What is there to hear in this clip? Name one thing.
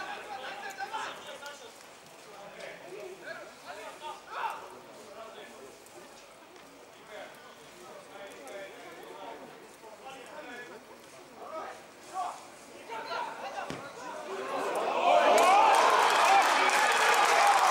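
Players shout to each other across a football pitch outdoors.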